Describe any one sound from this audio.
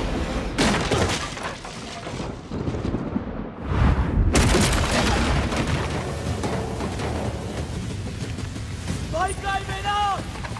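Heavy blows and crashes land in a brawl.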